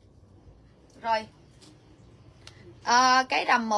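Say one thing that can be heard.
A woman speaks loudly and with animation close by.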